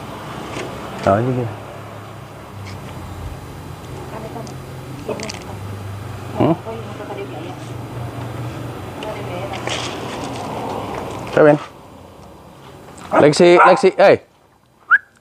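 A man talks loudly outdoors, a few steps away.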